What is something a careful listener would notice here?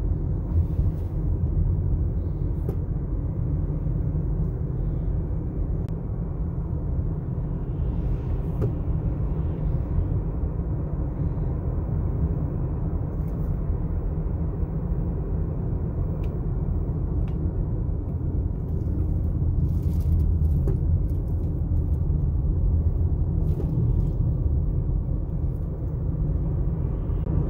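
A car's engine hums steadily, heard from inside the car.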